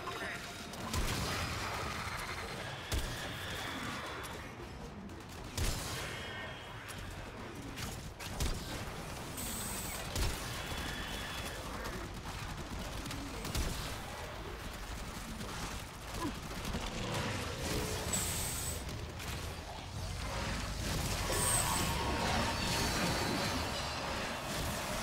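Heavy impacts and explosions boom.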